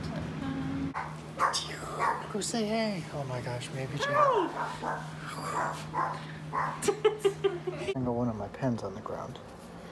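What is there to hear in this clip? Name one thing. A man talks playfully and laughs close by.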